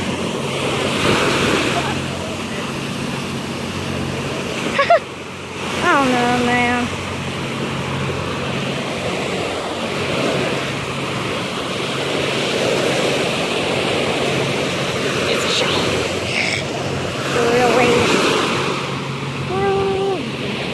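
Waves break and wash up onto the shore close by.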